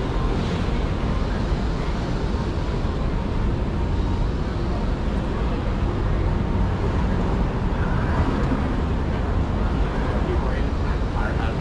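Footsteps tap steadily on a paved sidewalk.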